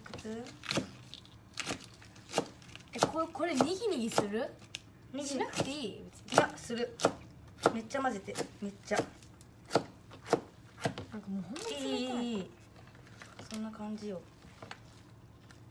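A knife chops vegetables on a cutting board with quick, sharp knocks.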